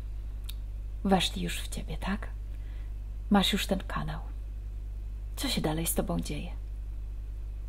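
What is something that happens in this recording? A woman speaks calmly in short phrases over an online call.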